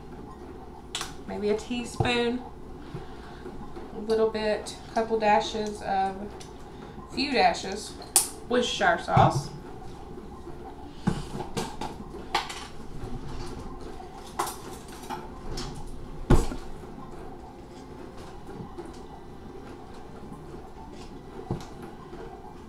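Utensils clink and knock against jars and bowls.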